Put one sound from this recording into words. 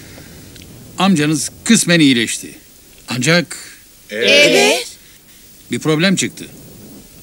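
A middle-aged man speaks calmly and seriously.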